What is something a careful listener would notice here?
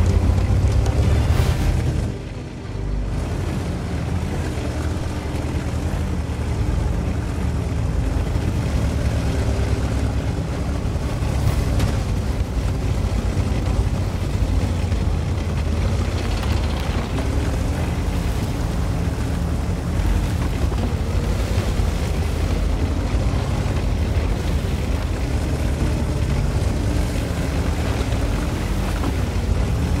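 Tank tracks clatter over dirt.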